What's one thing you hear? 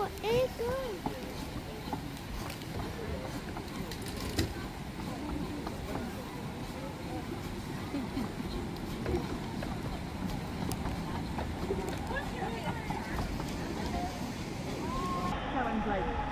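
A small steam locomotive puffs as it pulls away.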